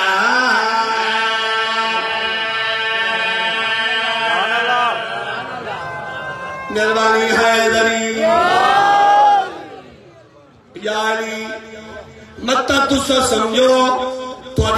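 A man chants loudly and melodiously into a microphone, heard through loudspeakers outdoors.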